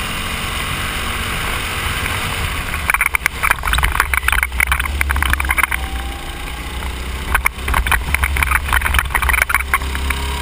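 A small kart engine drones steadily up close.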